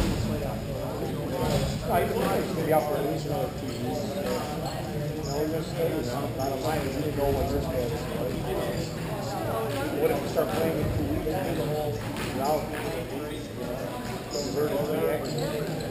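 Ice skates scrape faintly in a large echoing rink.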